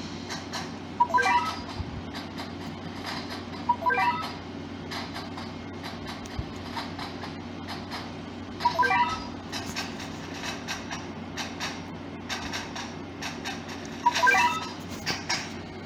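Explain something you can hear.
Short bright electronic chimes ring out now and then from a mobile game.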